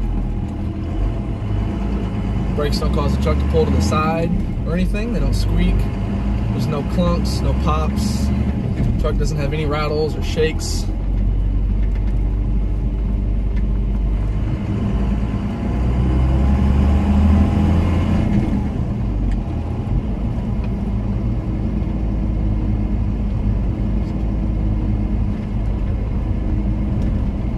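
Tyres roll on pavement.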